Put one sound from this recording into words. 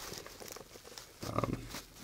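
A fabric case rustles as it is handled.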